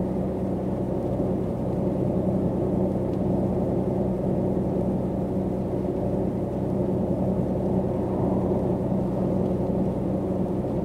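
A bus engine hums steadily while driving at speed.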